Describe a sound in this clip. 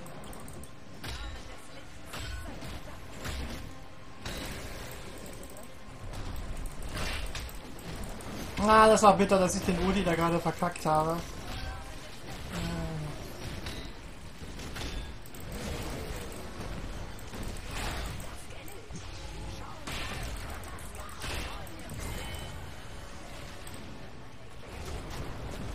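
Game spells and attacks clash with sharp impacts and zaps.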